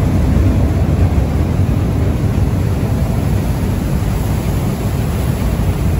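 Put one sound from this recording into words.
Churning wake water rushes and foams behind a boat.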